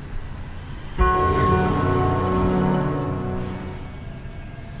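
A bright, sparkling chime rings out and slowly fades.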